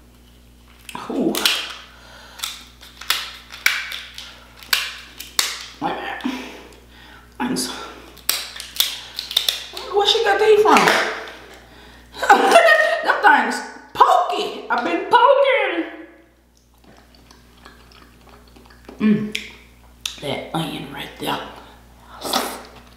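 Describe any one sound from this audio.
A young man chews and smacks his lips loudly.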